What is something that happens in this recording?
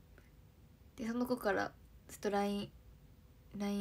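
A young woman speaks softly and casually, close to the microphone.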